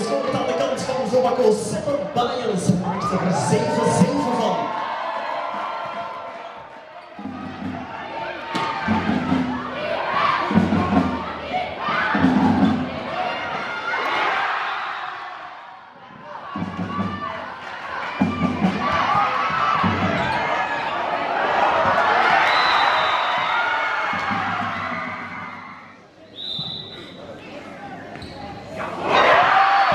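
Young girls shout and call to each other in a large echoing hall.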